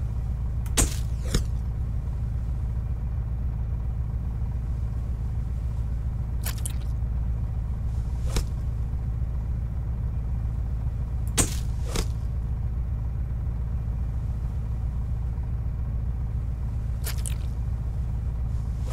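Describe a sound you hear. Water laps steadily against the side of a boat.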